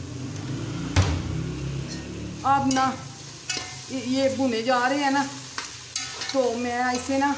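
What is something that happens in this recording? A metal spatula scrapes and clatters against a pot.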